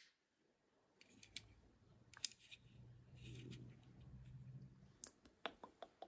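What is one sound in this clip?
A plastic joystick on a fidget toy clicks softly.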